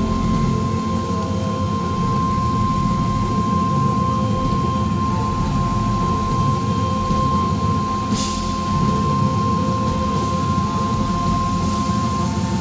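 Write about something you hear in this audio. A keyboard plays along with the band.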